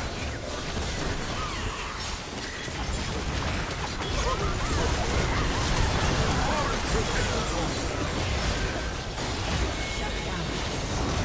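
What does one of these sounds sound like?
Spells whoosh, crackle and burst during a game battle.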